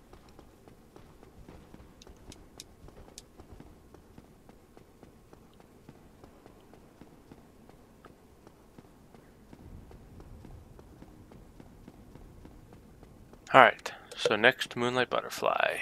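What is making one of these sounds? Footsteps run quickly across a stone floor.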